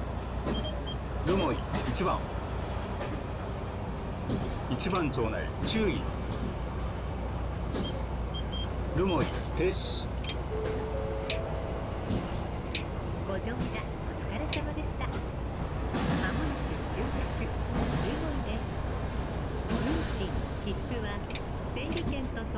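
Train wheels squeal faintly against the rails.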